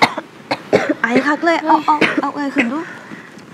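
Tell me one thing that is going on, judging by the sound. Another young woman speaks quickly and urgently, close by.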